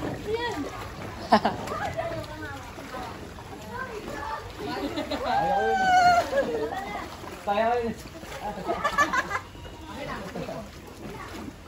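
Water splashes and laps in a pool.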